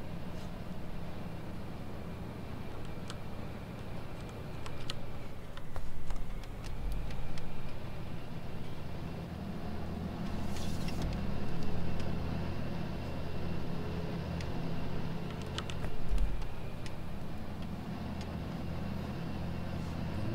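A seed drill rattles behind a tractor.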